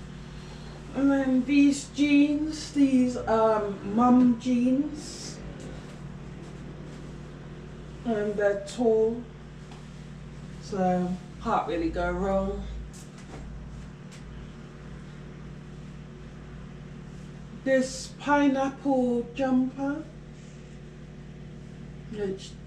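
Clothes rustle as a young woman shakes them out.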